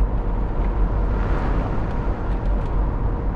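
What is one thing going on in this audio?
A van passes close by with a brief whoosh.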